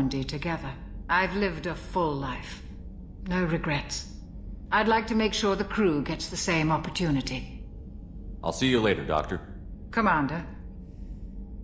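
A woman speaks calmly.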